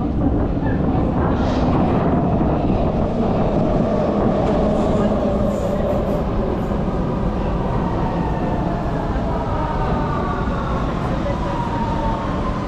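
A subway train rumbles into the station and brakes with a falling whine.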